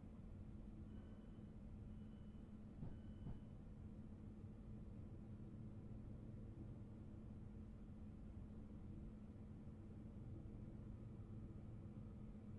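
A train engine hums steadily as the train rolls along the track.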